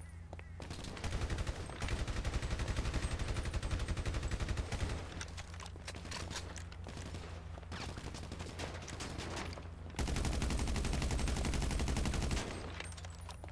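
A rifle fires in rapid automatic bursts.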